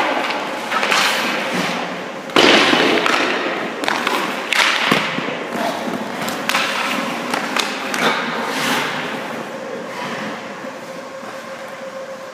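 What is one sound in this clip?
Skate blades scrape and hiss across ice in a large echoing rink.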